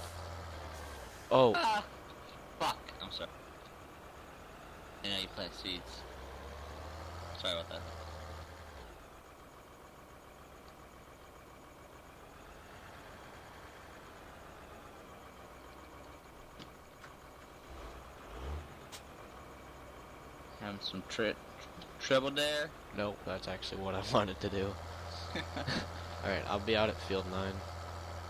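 A tractor engine hums low and steady.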